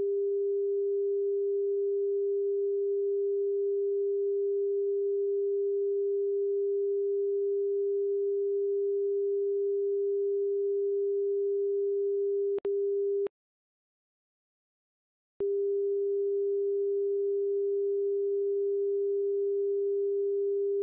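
A steady, mid-pitched test tone sounds, cuts out briefly and returns.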